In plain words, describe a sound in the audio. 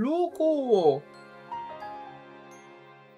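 A short, sad game tune plays.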